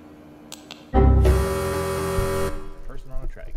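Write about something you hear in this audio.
A computer lets out a loud, harsh error buzz.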